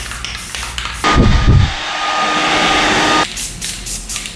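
A heat gun blows with a steady whir and whine.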